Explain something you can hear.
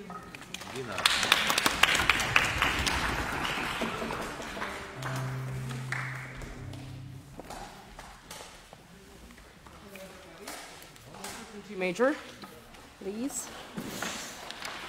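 A small ensemble of string and wind instruments plays together.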